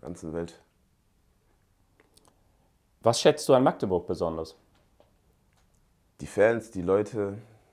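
A young man speaks calmly and close to a microphone, in short phrases with pauses.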